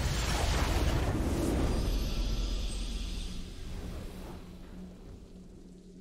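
A triumphant game fanfare swells loudly and then fades away.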